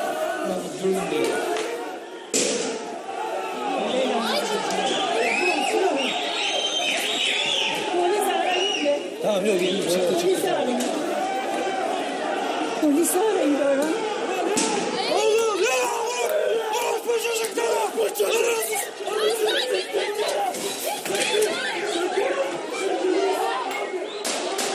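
A crowd of men shouts and yells in the street below, heard from a height.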